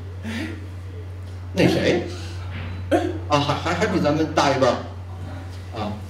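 An older man answers through a microphone.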